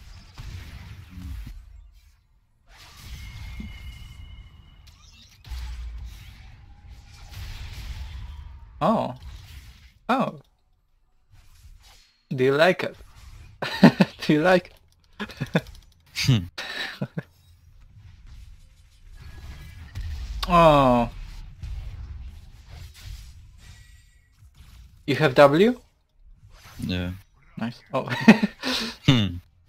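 Video game combat effects whoosh and clash.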